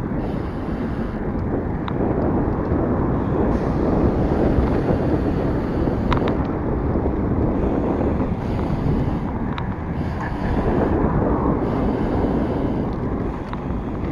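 Wind rushes loudly past a moving cyclist.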